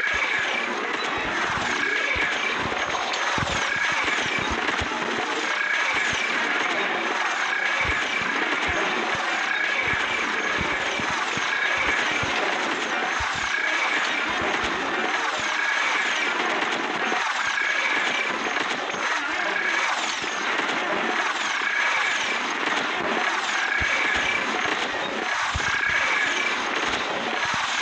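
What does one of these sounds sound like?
Cartoon plants shoot a rapid stream of popping projectiles.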